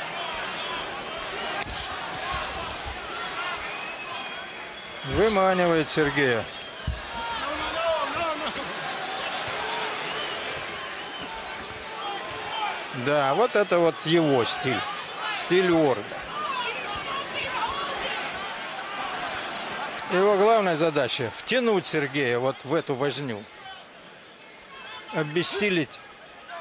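A crowd roars in a large arena.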